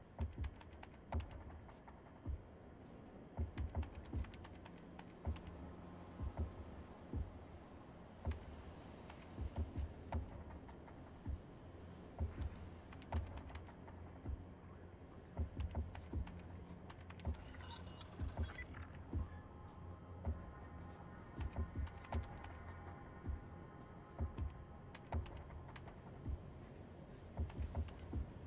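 Short electronic clicks tick again and again as a cursor steps across a grid.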